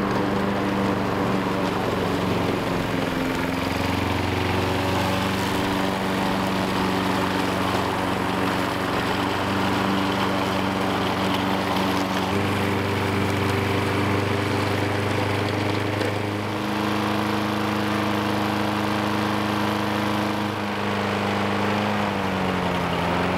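A lawn mower engine drones steadily nearby.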